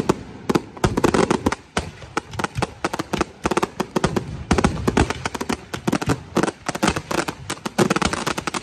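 Fireworks bang and crackle rapidly overhead, one after another.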